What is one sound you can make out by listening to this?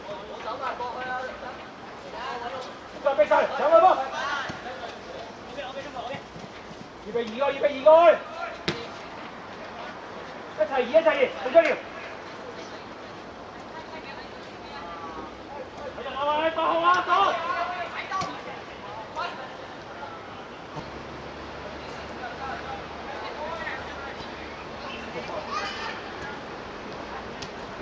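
Young boys shout to each other across an open pitch outdoors.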